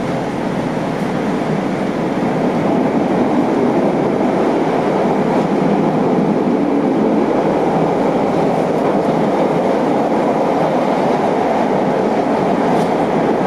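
A train rumbles and roars steadily along the tracks, heard from inside a carriage.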